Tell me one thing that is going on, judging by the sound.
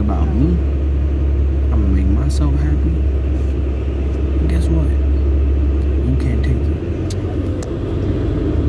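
A teenage boy talks casually, close by.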